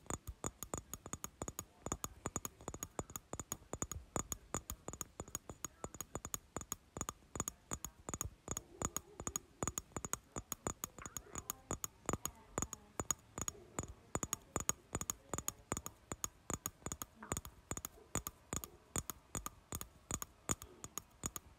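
Quick game footsteps patter in a fast, steady rhythm.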